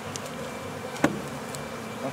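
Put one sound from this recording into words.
A wooden hive frame knocks once against a box.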